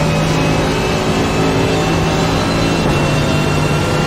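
A racing car's gearbox shifts up with a brief dip in the engine note.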